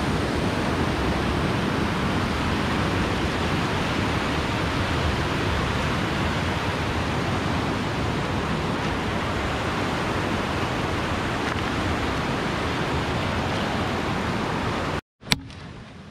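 Fast water rushes and splashes over rocks.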